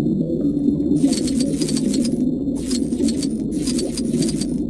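Small coins tinkle in quick bursts as they are collected.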